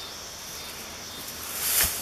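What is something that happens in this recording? A stone scrapes softly against soil as a hand lifts it.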